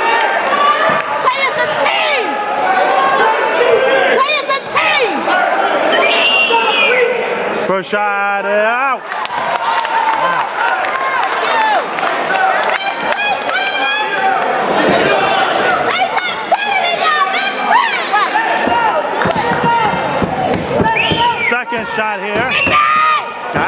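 A crowd of spectators shouts and cheers loudly in an echoing gym.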